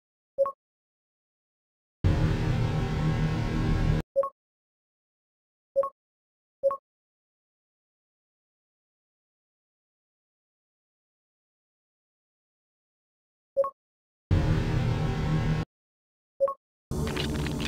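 A short chime clicks several times.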